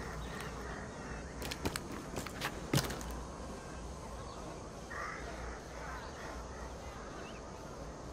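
Leaves and branches rustle as someone climbs through a tree.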